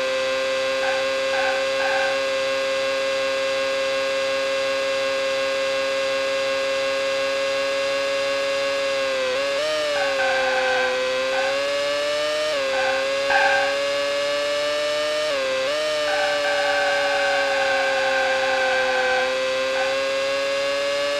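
A racing car engine whines at high revs, dipping briefly with gear shifts.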